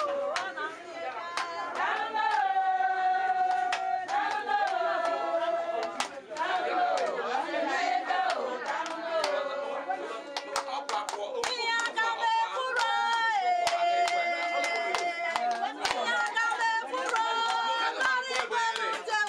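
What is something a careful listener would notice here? A woman sings loudly close by.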